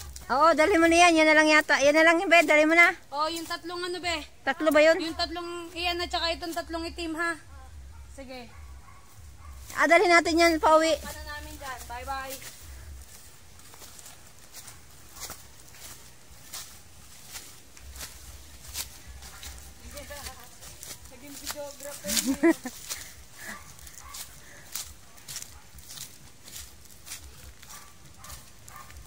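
Footsteps rustle and crunch through dry leaves and undergrowth.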